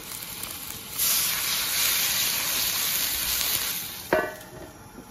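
Water pours into a hot wok and hisses loudly.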